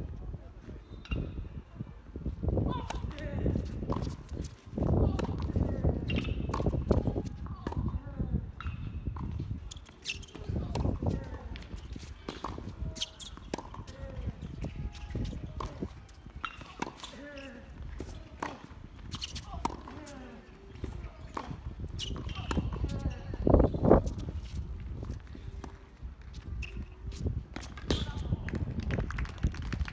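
Tennis balls are struck with rackets, with sharp pops outdoors.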